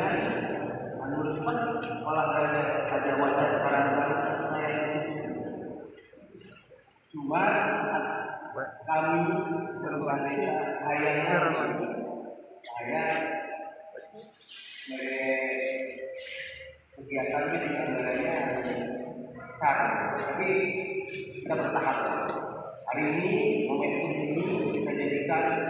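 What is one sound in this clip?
A man speaks with animation through a microphone and loudspeaker in an echoing room.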